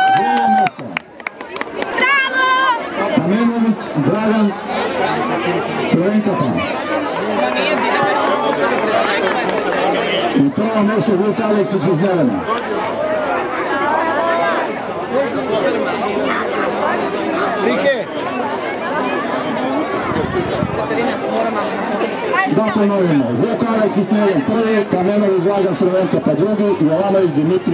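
Children chatter in the background.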